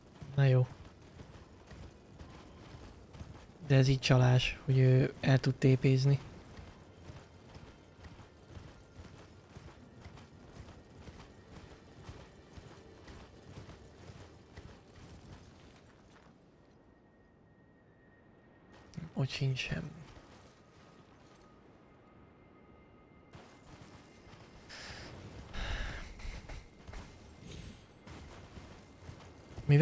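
Horse hooves pound on snowy ground.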